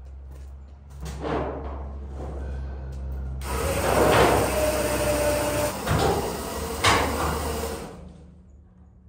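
A chain hoist clanks and rattles as a chain is pulled.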